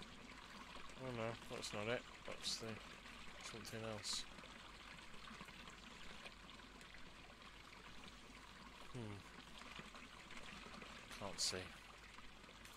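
A young man speaks calmly into a headset microphone, close by.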